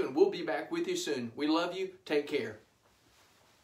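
A middle-aged man speaks close up with animation.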